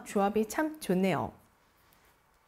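A young woman speaks brightly and close to a microphone.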